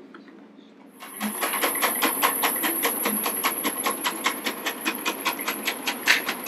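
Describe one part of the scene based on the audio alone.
A sewing machine runs with a fast, even rattle.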